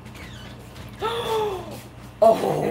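A woman exclaims in surprise close by.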